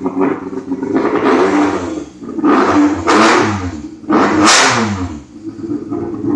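A car engine revs sharply several times, its pitch rising and falling.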